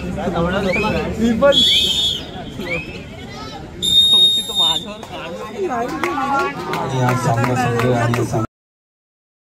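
A crowd of young men shouts and cheers nearby.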